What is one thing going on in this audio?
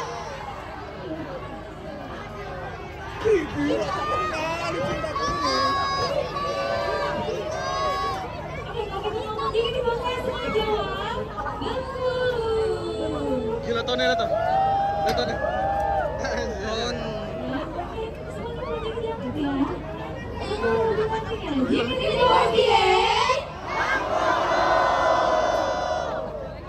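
Young women sing together over loudspeakers.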